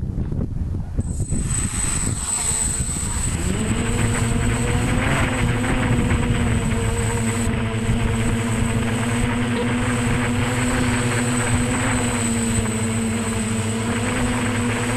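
A small drone's propellers whir into a steady, high buzzing hum.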